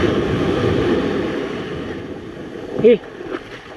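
Surf foams and hisses around a boat's hull.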